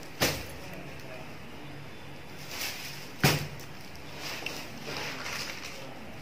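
Folded cloth rustles softly as a hand moves it.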